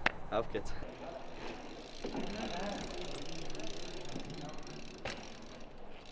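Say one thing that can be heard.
Bike tyres roll over pavement.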